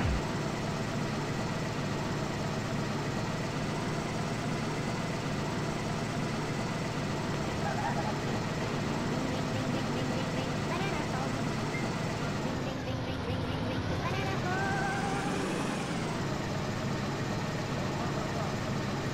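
A truck engine hums steadily as the vehicle drives over rough ground.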